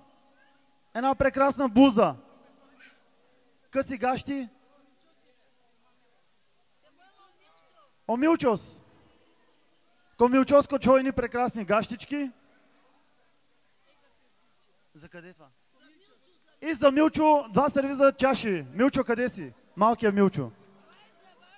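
A young man speaks loudly and with feeling into a microphone, heard through loudspeakers, in bursts with pauses.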